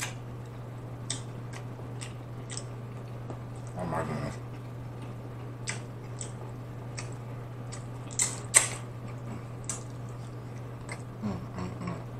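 A man eats close to a microphone, with wet smacking and crunching mouth sounds.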